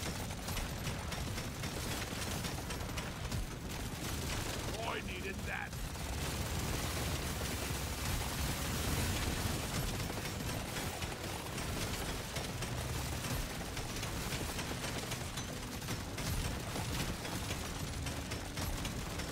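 Rapid gunfire crackles and pops without a break.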